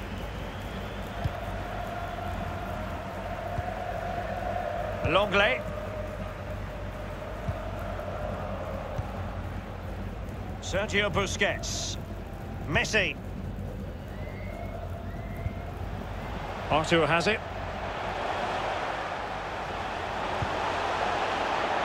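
A stadium crowd murmurs steadily and swells toward the end.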